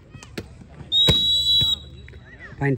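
A referee's whistle blows once, shrill and short.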